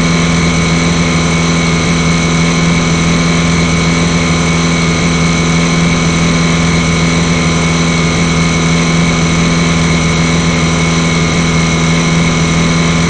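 A motorboat engine drones steadily at high speed.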